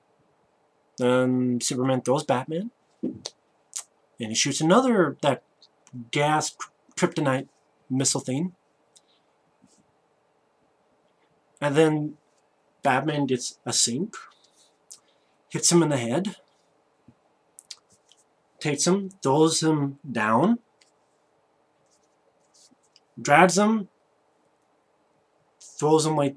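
A young man talks animatedly and close to a microphone, in bursts with pauses.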